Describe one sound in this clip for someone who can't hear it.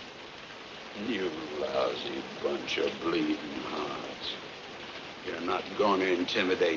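A middle-aged man speaks in a strained, halting voice.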